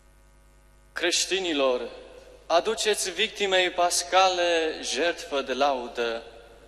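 A young man speaks calmly through a microphone in a large echoing hall.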